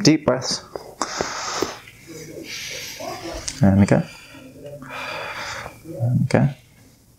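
A young man breathes in and out deeply.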